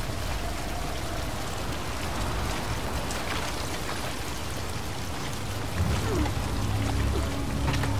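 Footsteps crunch and rustle over a heap of loose debris.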